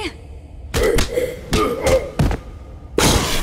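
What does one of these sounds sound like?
Heavy blows thump as a fighter punches a zombie.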